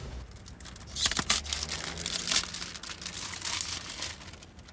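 A box and a glass bottle rustle and clink in a hand.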